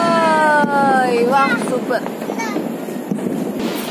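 An aerial firework bursts and crackles overhead.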